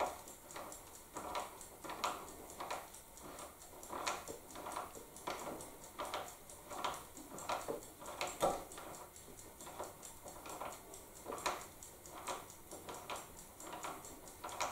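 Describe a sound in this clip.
A hand tool scrapes and clicks against wood in short, quick, repeated strokes.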